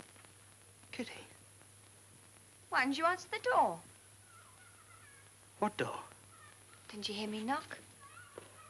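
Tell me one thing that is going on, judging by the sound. A young woman speaks brightly and clearly nearby.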